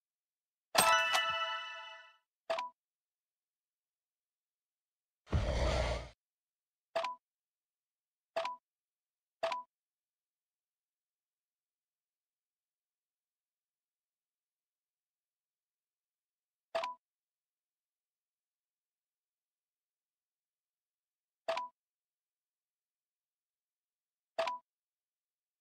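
Short soft interface blips sound now and then.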